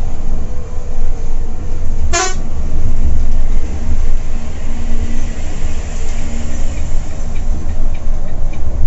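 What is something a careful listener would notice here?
Tyres hum on a paved road beneath a coach.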